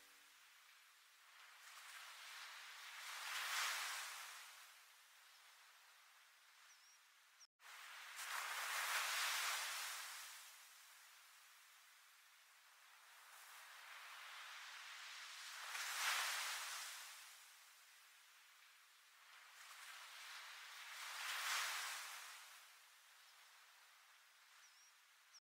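Waves wash up onto a pebble beach and draw back, rising and falling in slow surges.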